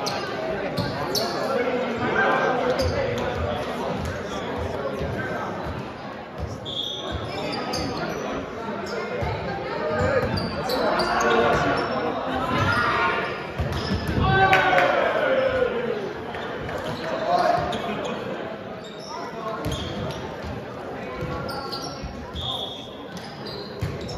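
A volleyball is struck with hands.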